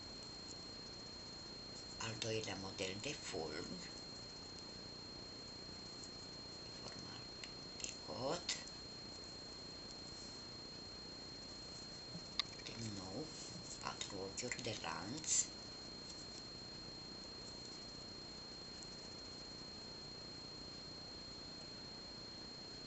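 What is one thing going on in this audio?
A crochet hook and yarn rustle softly.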